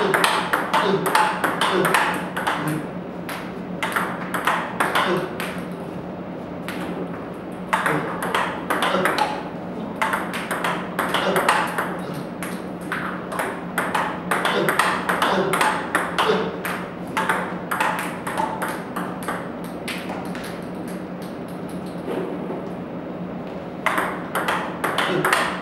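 Ping-pong balls click rapidly off a paddle and a table.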